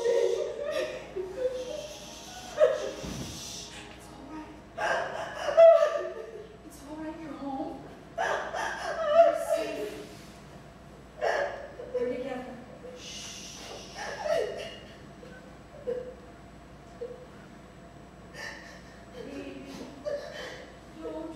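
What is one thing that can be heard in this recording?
A woman speaks emotionally in an echoing room.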